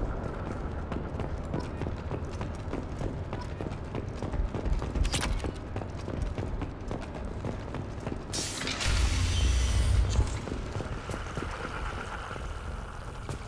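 Heavy armored footsteps clank steadily.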